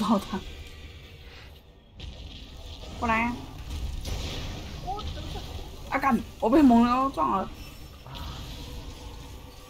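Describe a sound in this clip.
A fiery blast bursts with a crackle.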